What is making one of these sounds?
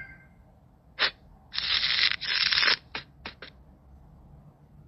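Playing cards flick down onto a table.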